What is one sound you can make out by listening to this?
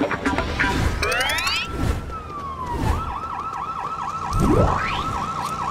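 Bright chiming notes ring out as a game prize is collected.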